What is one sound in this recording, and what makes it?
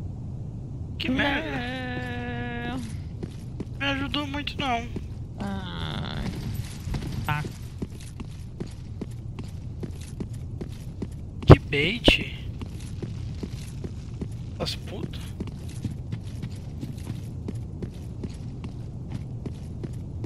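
Armoured footsteps clank on stone as a knight walks.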